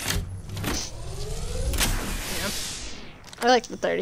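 A device charges up with a rising electronic whir.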